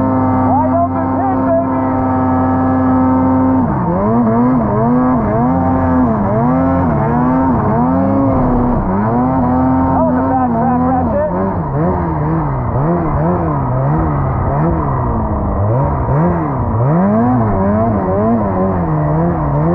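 A snowmobile engine idles steadily, then revs up and down repeatedly as it rides through snow.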